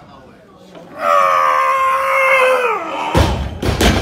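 A young man shouts loudly with strain while lifting.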